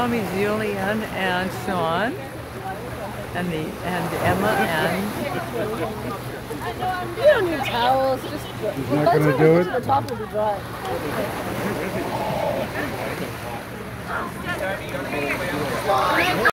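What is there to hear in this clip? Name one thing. Young people talk and call out to each other outdoors.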